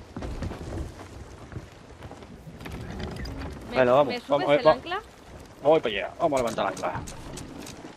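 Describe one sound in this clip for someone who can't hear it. Waves wash against a wooden ship's hull.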